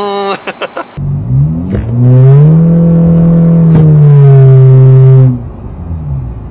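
A car engine revs loudly and holds a steady high drone.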